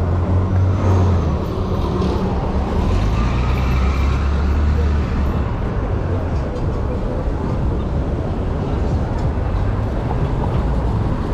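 Busy street traffic hums steadily outdoors.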